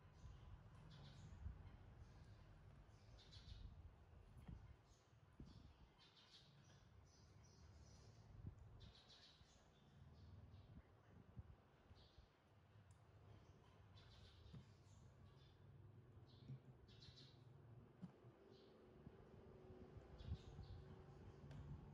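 A plastic toy knocks and scrapes on a wooden table.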